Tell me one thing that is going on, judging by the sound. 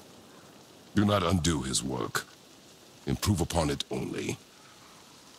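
A man speaks in a deep, gruff voice, close by.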